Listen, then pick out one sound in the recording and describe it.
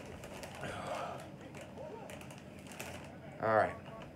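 A chip bag crinkles.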